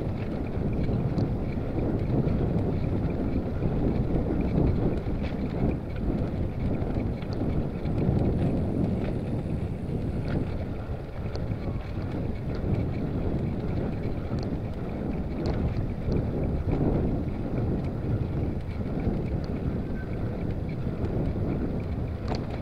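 Wind rumbles loudly across the microphone.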